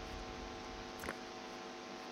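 A short interface click sounds.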